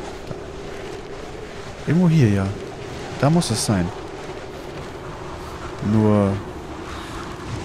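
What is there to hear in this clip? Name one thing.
Wind howls steadily outdoors in a snowstorm.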